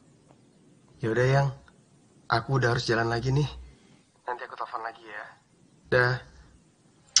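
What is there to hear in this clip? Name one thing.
A young man speaks with animation into a phone.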